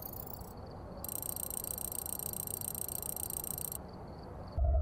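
A score counter ticks rapidly with a bright electronic chime.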